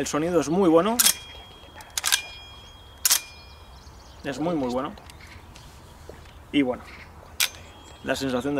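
A rifle's metal parts click and clack as it is handled.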